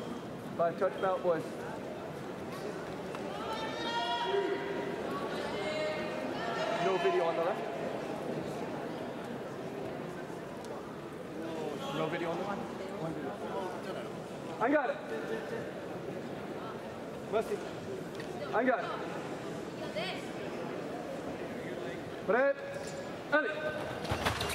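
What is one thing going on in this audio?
Sports shoes squeak sharply on a hard floor in a large echoing hall.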